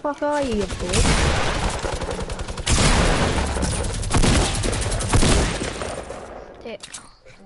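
Rapid gunshots fire in bursts close by.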